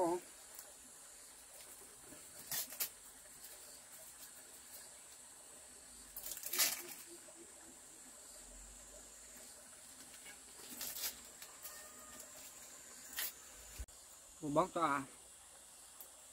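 Corn husks rustle and snap as they are peeled.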